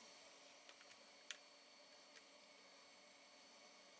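A test clip snaps onto a circuit board with a small click.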